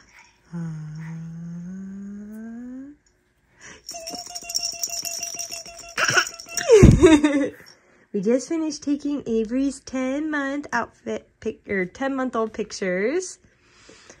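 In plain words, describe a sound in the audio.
A baby babbles and coos up close.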